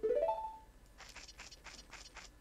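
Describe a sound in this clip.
Footsteps patter on grass.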